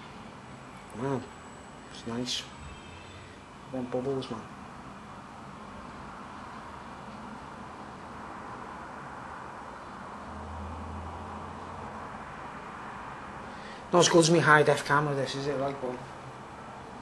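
A middle-aged man speaks close by, with animation.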